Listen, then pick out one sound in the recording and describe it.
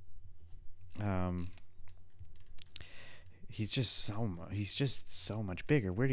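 A man speaks with animation, close into a microphone.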